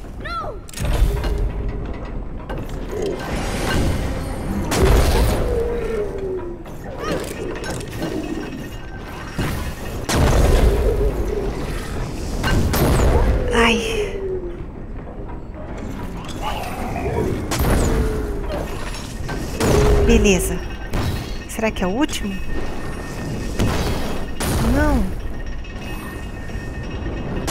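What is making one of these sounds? Large shells whoosh through the air again and again.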